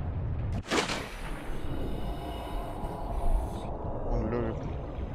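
Muffled underwater sound hums and gurgles.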